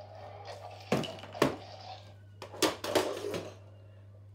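A toy clatters on a wooden floor.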